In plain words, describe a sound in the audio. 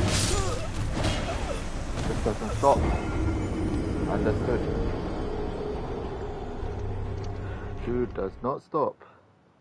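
A man talks into a microphone.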